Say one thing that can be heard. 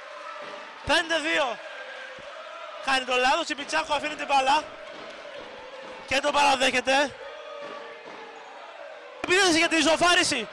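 A crowd cheers and chants loudly in bursts in a large echoing hall.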